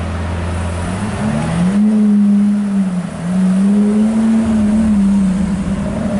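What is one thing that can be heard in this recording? A sports car engine revs up loudly, rising and falling twice.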